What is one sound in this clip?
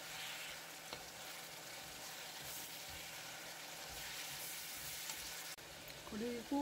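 Chopsticks stir and toss burdock strips in a frying pan.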